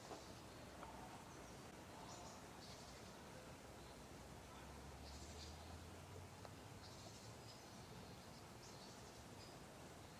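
A small waterfall splashes steadily into a pond.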